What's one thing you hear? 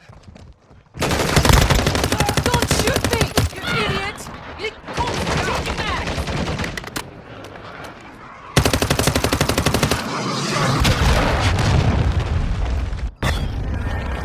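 Rapid gunfire rattles loudly and close.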